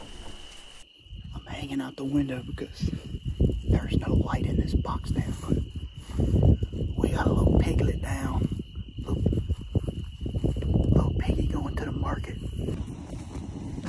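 A man talks quietly and close by, in a low, hushed voice.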